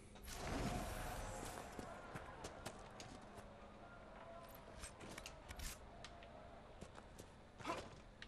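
Footsteps crunch softly on dry leaves.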